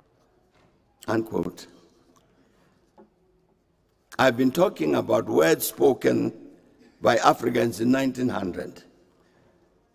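An elderly man speaks calmly and formally into a microphone.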